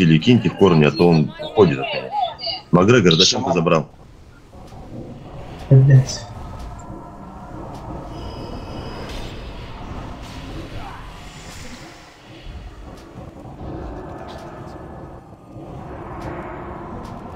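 Fantasy battle effects clash and crackle with bursts of magic.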